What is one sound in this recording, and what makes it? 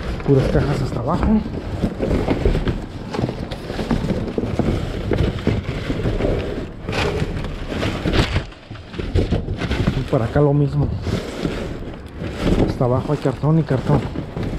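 Cardboard boxes rustle and scrape as gloved hands move them about.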